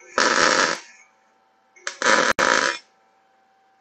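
An electric welding arc crackles and hisses in short bursts.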